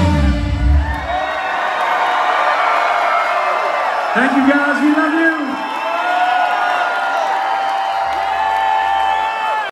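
A crowd sings along and cheers loudly.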